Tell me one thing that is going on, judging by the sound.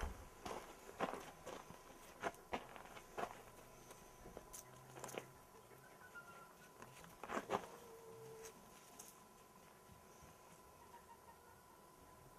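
A puppy's paws patter across gravel and concrete.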